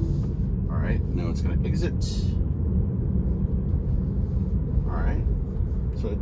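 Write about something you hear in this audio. A car's road noise rumbles steadily from inside the cabin.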